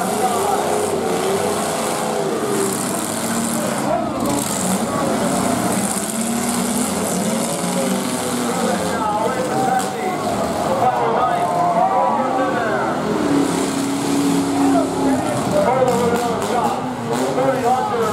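Car engines rev and roar loudly outdoors.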